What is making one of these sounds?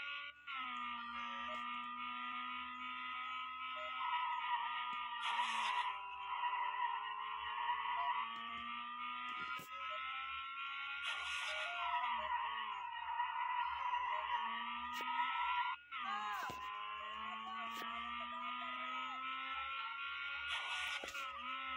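A car engine hums steadily, its pitch rising and falling as the car speeds up and slows down.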